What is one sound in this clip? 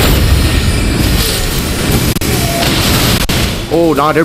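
A magical blast whooshes and crackles.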